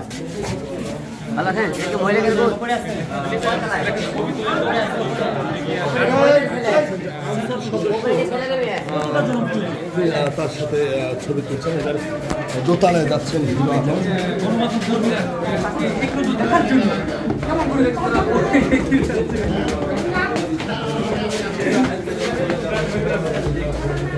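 A crowd of men talk over one another loudly and close by.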